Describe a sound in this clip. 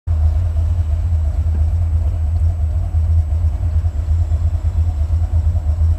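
A car engine idles with a low, steady rumble inside the car.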